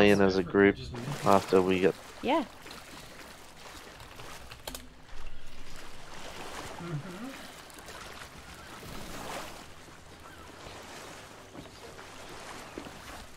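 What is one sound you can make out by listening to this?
Waves wash and roll on the open sea.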